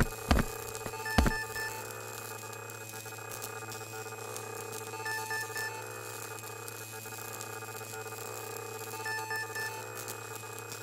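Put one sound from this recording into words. Short electronic beeps chirp in quick bursts.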